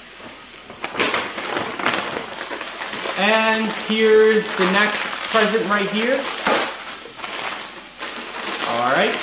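A plastic wrapper crinkles and rustles in hands.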